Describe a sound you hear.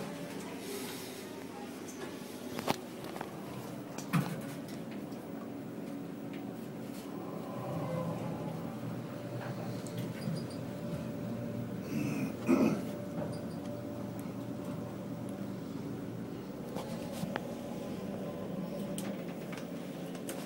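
An elevator hums steadily as it rides upward.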